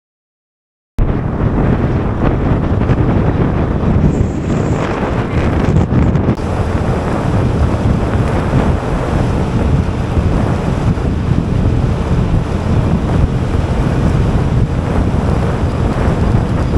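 Wind buffets and rumbles loudly against the microphone on a moving vehicle.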